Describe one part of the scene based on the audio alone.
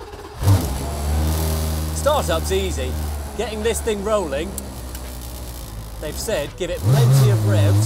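A race car engine starts and idles with a deep rumble.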